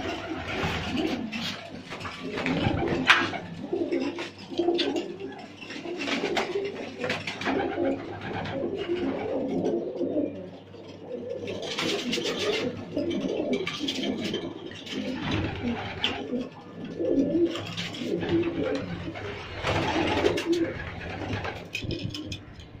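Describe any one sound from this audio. Pigeons coo in low, throaty warbles close by.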